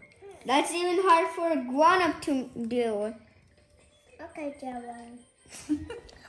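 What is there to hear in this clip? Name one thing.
A young boy talks close by with animation.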